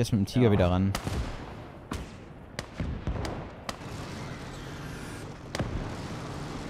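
Tank guns fire with sharp, echoing booms.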